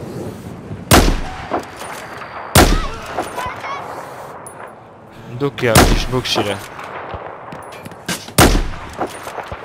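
A sniper rifle fires loud single shots, each followed by a short echo.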